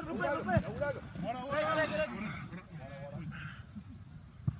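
Young men shout loudly together outdoors.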